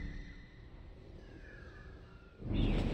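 An eagle screeches overhead.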